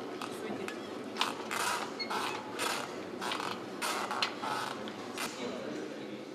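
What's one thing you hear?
A small audience claps.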